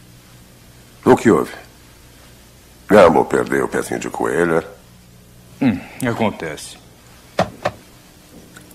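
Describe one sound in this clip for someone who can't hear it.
A second man speaks quietly and firmly.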